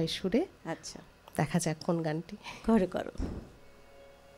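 A woman talks with animation into a microphone.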